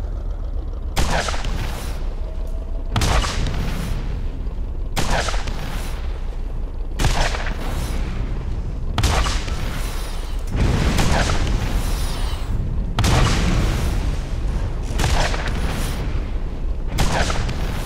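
Explosions boom again and again at steady intervals.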